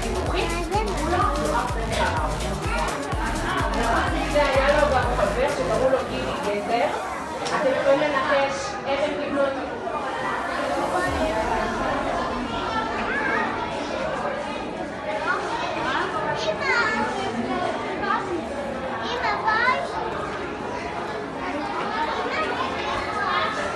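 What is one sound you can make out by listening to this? Children chatter and call out nearby.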